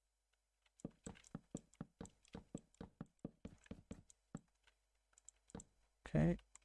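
Wooden blocks are placed with quick, soft knocking thuds.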